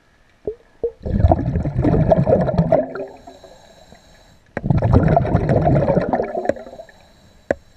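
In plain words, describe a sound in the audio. Water churns and rumbles in bursts, heard from underwater.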